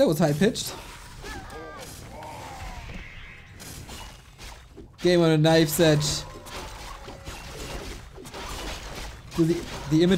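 Weapons clash and magic spells burst in a fantasy battle.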